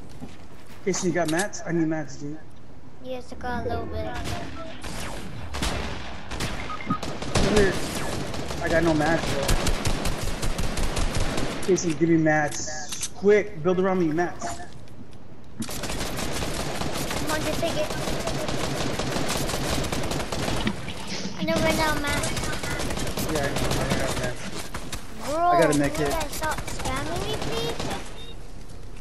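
A young boy talks with animation into a headset microphone.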